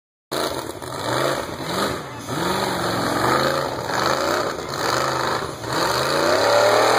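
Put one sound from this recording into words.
An engine revs hard, rising and falling in pitch, with a rough roar.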